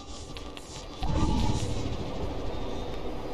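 A loud burst of static noise hisses.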